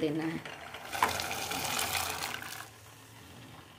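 Peas pour and splash into a pot of water.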